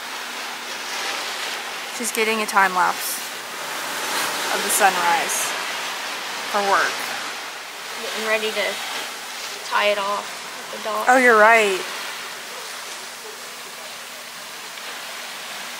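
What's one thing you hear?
Gentle waves wash on open water.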